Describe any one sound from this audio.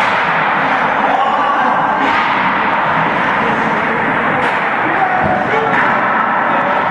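A man talks loudly in a large echoing rink.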